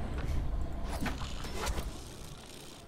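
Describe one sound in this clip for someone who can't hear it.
Leaves rustle as someone climbs through a tree.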